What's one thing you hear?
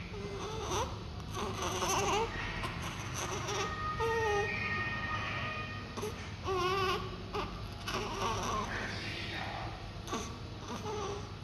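A newborn baby whimpers and grunts softly close by.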